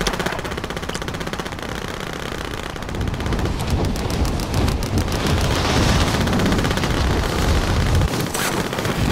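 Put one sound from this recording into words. Wind rushes loudly past during a fast fall.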